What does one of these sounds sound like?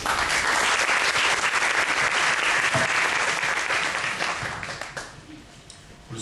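An audience applauds loudly and steadily, then the clapping fades away.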